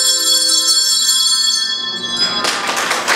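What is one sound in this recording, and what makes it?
Handbells ring out a tune in a room.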